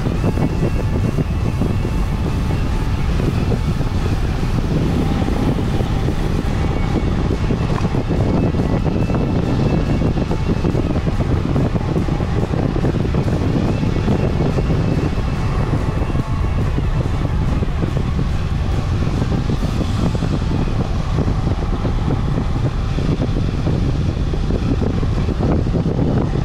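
Wind rushes loudly past a bicycle rider outdoors.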